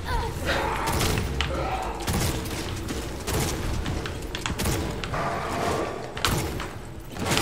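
A creature screeches and growls in pain.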